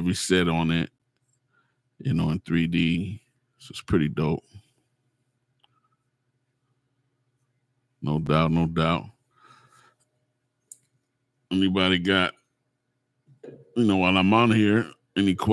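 A middle-aged man speaks calmly and closely into a microphone, in short phrases with pauses.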